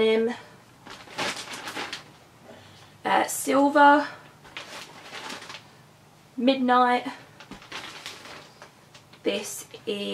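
Paper rustles and crinkles as it is unwrapped.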